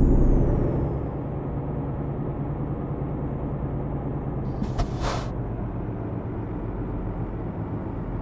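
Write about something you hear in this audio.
A truck engine hums more quietly as it slows.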